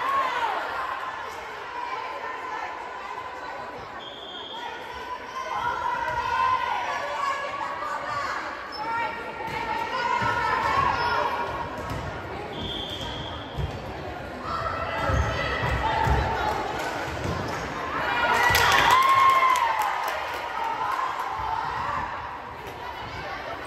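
Players call out to each other across the court.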